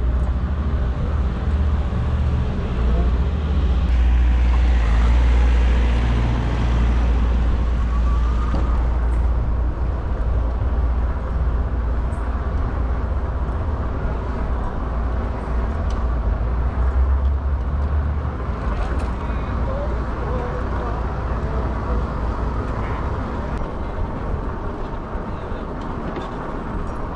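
Wind rumbles steadily across a microphone while riding outdoors.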